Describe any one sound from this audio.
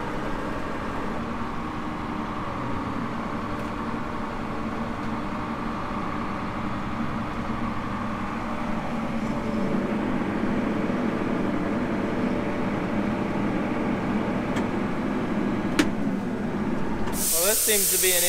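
A tractor engine rumbles steadily from inside the cab.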